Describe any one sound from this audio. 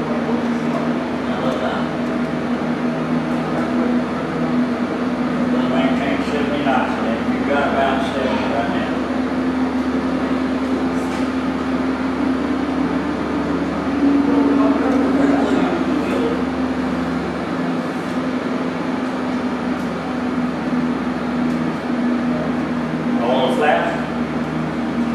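A steady electrical hum fills the room.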